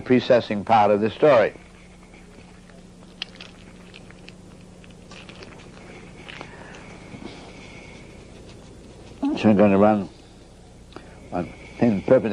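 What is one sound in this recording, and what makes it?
An elderly man speaks calmly and closely.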